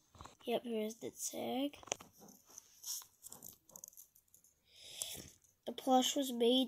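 Fingers rub and crinkle a fabric tag close by.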